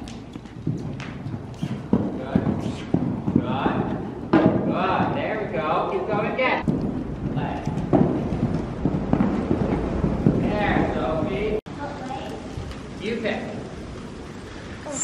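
A horse's hooves thud on soft ground as it canters.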